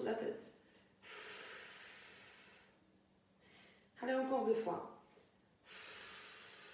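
A woman breathes out audibly.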